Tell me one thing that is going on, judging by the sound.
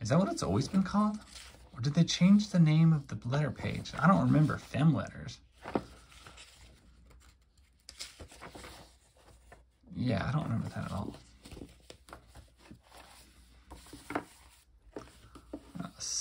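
Paper pages rustle and flip.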